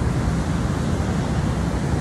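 Water rushes loudly.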